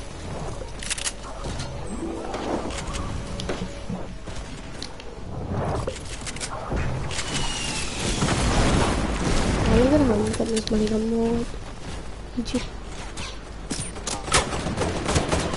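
Footsteps patter as a game character runs and climbs.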